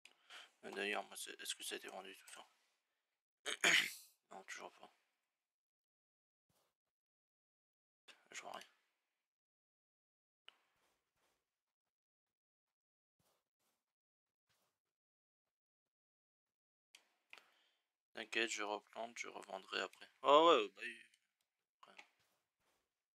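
A young man talks casually into a close microphone, in bursts with pauses.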